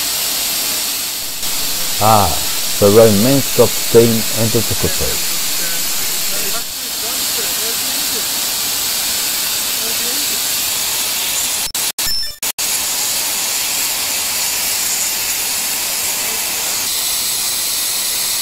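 A steam locomotive hisses steadily while idling.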